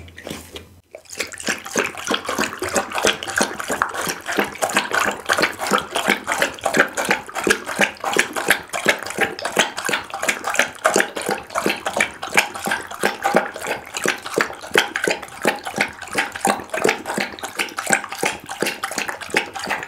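A dog laps liquid quickly from a bowl, close up.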